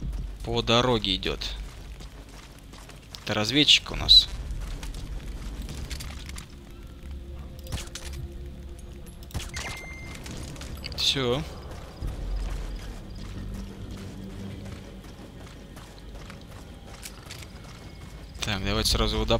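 Footsteps crunch on dirt and gravel as a soldier runs.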